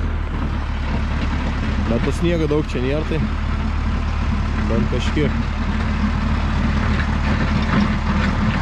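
A tractor engine rumbles steadily as the tractor approaches.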